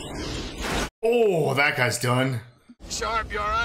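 A young woman nearby groans in disgust.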